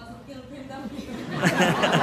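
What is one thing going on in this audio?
A woman speaks through a microphone.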